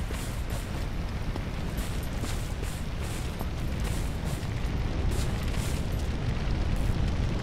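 Boots tread across grass.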